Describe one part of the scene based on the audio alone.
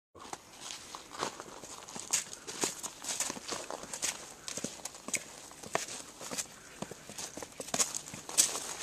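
Footsteps crunch and scuff on stone steps and gravel.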